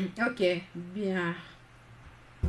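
A man speaks calmly nearby.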